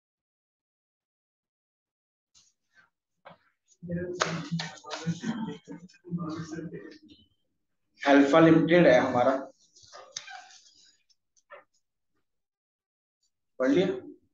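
Sheets of paper rustle as they are shuffled and moved.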